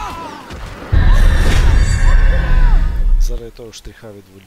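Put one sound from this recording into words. A loud deep boom rumbles and fades.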